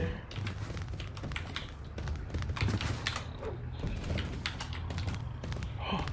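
Fists land punches with dull thuds.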